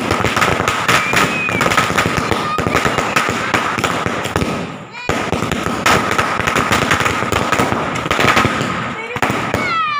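Fireworks crackle and pop rapidly close by.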